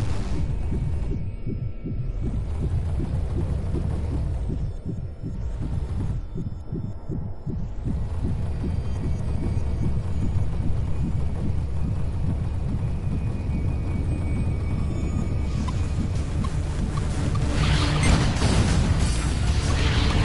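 A spaceship engine hums with a deep steady roar.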